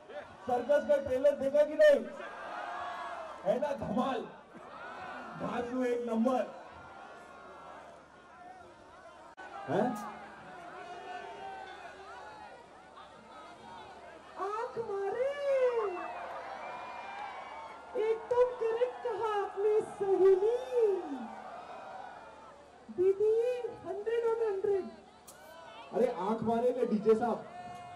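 A man talks energetically into a microphone over loudspeakers outdoors.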